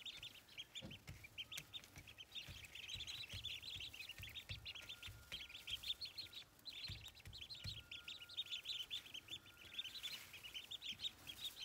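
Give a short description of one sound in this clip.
Ducklings rustle through dry straw.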